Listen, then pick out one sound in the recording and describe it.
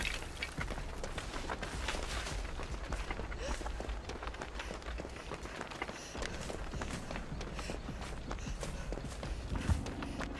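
Footsteps run quickly through grass and over soft ground.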